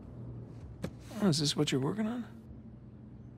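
A young man speaks casually and curiously, close by.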